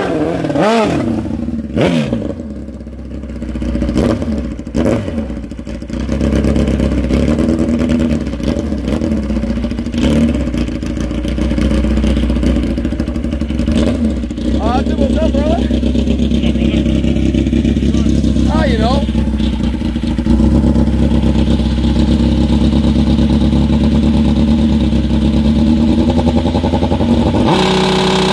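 A drag motorcycle engine idles with a loud, rough rumble close by.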